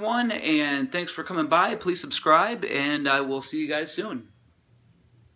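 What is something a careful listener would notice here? A man talks calmly, close to the microphone.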